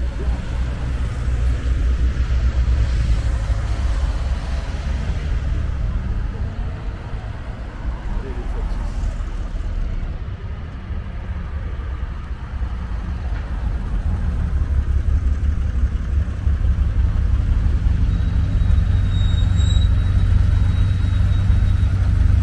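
A car drives along a road.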